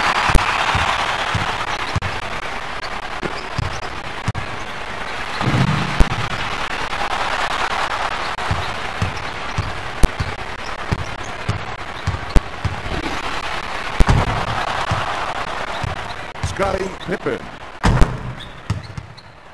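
A video game arena crowd cheers.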